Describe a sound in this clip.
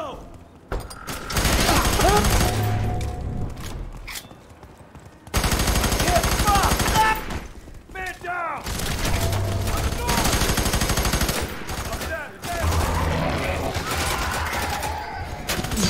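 Rapid gunfire rattles in loud bursts.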